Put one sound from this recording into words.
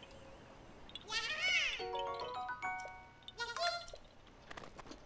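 A short cheerful chime of game music plays.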